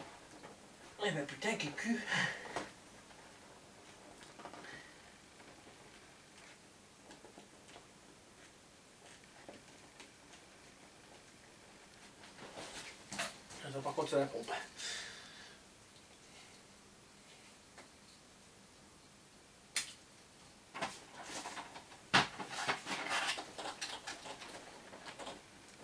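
Inflatable vinyl rustles and squeaks up close.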